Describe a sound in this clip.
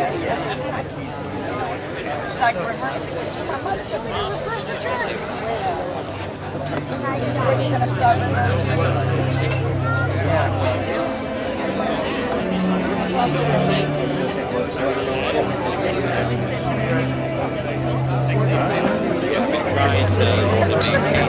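A crowd of men and women chatters outdoors nearby.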